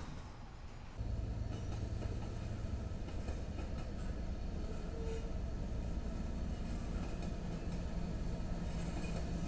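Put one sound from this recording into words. A diesel locomotive engine drones steadily as it approaches.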